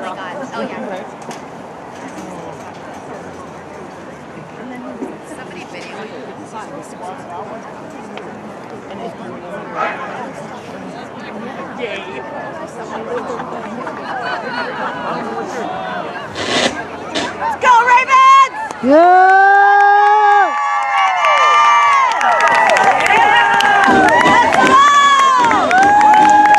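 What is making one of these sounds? A large outdoor crowd murmurs and chatters.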